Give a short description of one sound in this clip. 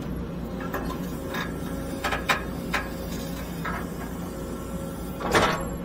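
A digger bucket scrapes and pushes through dirt.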